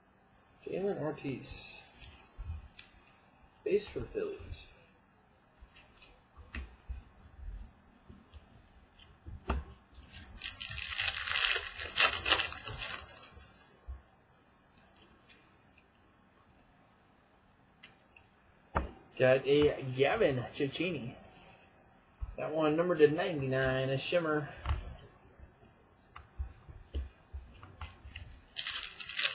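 Trading cards in plastic sleeves rustle and click as hands shuffle them.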